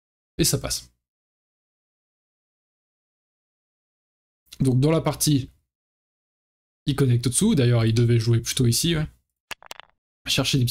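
A young man speaks calmly and closely into a microphone, in short bursts with pauses.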